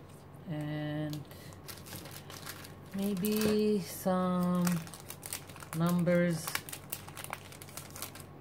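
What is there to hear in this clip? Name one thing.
A plastic sleeve crinkles and rustles.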